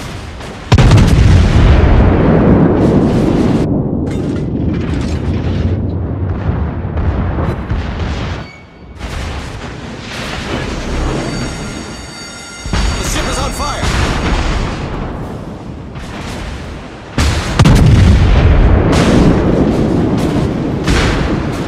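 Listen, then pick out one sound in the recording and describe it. Heavy naval guns fire in loud booming salvos that rumble away.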